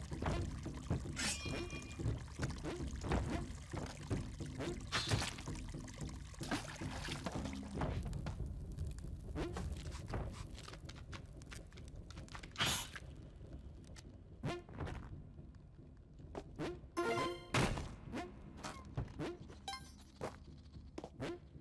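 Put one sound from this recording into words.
Short game sound effects click, thud and chime now and then.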